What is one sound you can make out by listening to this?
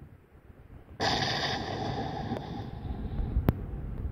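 A smoke grenade bursts open and hisses loudly.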